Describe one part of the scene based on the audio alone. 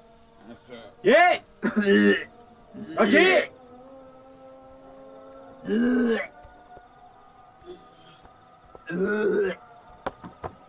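A man cries out in short, loud bursts.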